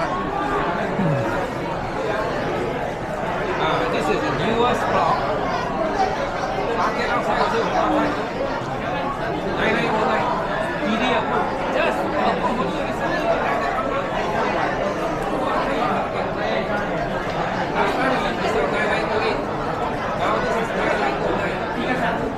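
A crowd of men and women chatter throughout in a large echoing room.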